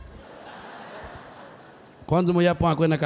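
An audience laughs softly.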